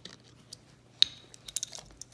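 A plastic water bottle crinkles as it is handled.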